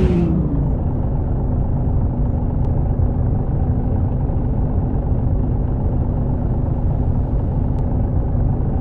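A bus engine hums steadily at low speed.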